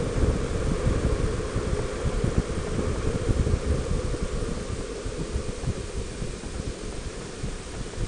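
Wind buffets loudly past a moving vehicle.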